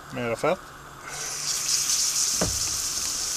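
Batter sizzles loudly as it is poured into a hot pan.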